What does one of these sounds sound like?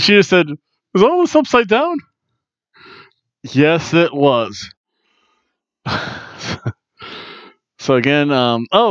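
A middle-aged man talks with animation close to a headset microphone.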